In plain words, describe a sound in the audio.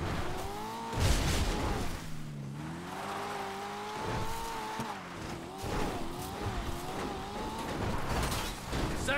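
Tyres rumble over rough, brushy ground.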